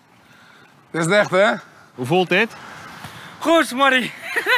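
A middle-aged man laughs loudly and heartily.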